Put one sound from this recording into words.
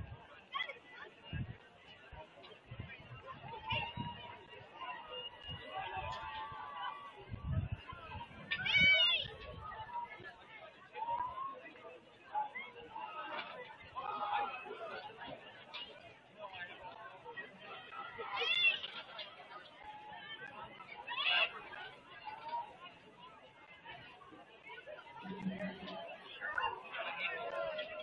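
A crowd chatters and shouts at a distance outdoors.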